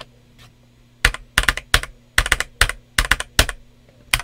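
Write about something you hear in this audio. A keyboard's large keys thump as they are pressed one at a time.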